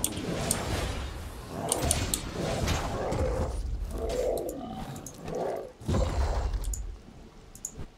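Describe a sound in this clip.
A large beast growls and roars during a fight.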